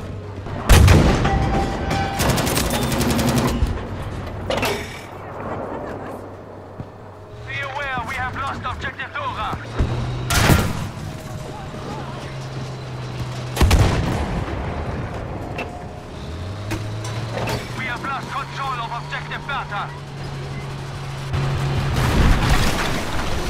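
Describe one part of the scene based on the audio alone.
Shells explode nearby with heavy blasts.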